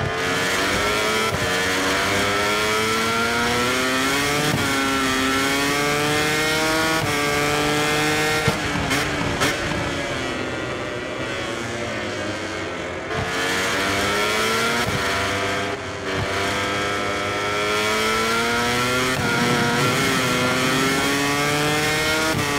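A racing motorcycle engine screams loudly, rising in pitch through the gears and dropping when slowing.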